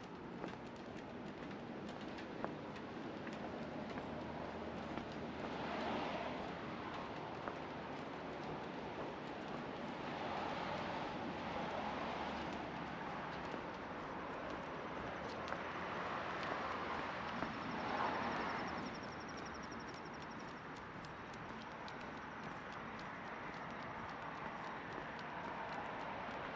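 A soft, steady outdoor hush fills the background.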